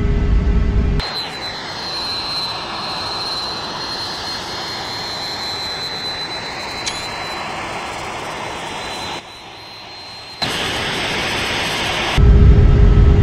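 A jet engine whines high from outside.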